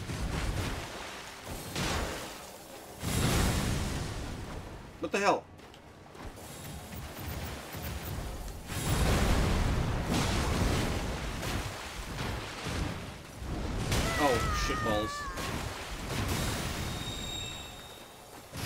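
Water splashes as feet wade through it.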